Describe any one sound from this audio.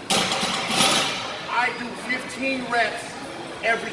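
Dumbbells clank as a man lifts them.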